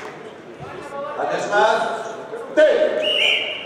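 A man shouts commands loudly in an echoing hall.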